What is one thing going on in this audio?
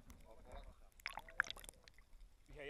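Water splashes and gurgles close by.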